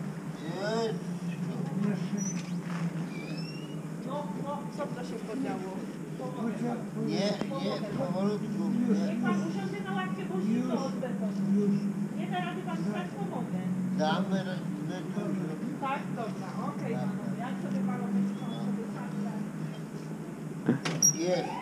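Men talk with animation nearby, outdoors.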